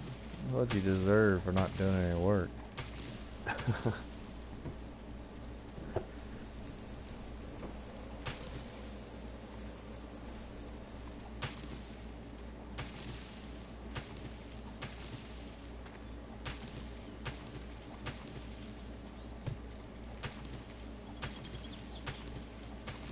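Dry grass rustles sharply as it is pulled up by hand.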